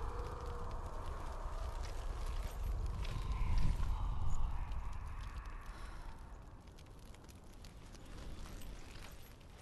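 Footsteps crunch on a gravel floor.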